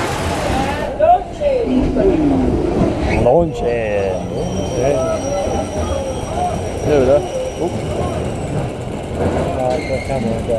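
A roller coaster car rattles along its track.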